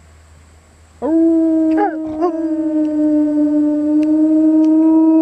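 A dog howls long and loud close by.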